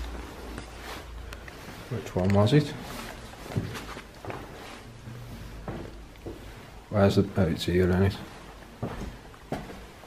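Footsteps tread slowly across a floor.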